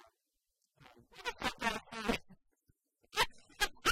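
A woman and a young man laugh loudly.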